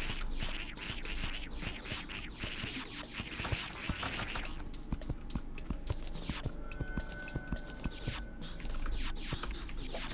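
Small thuds sound as creatures are struck.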